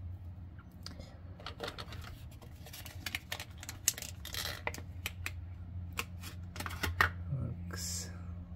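Small plastic parts click and tap as they are handled.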